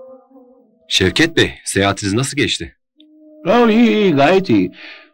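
A man talks calmly in conversation with another man.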